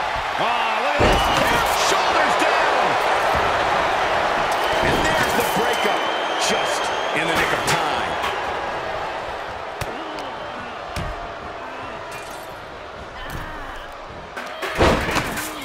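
Bodies thud onto a wrestling ring mat.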